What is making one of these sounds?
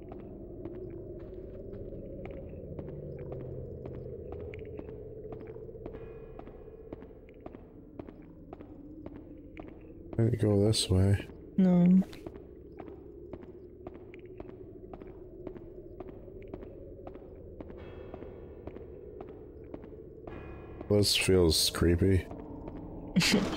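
Footsteps tap quickly on a hard stone floor.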